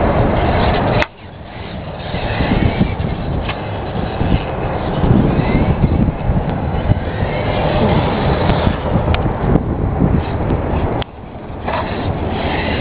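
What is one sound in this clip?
A small electric motor whines as a toy car races over concrete.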